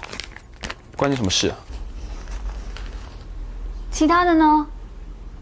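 A young woman answers curtly and close by.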